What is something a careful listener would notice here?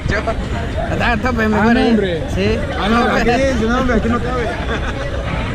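A young man talks close by, excitedly.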